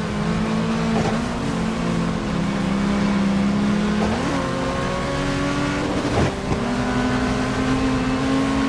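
A race car engine roars steadily and shifts gears.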